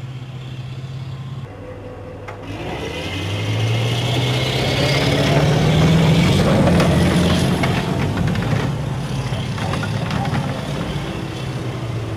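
The diesel engine of an amphibious assault vehicle roars under load.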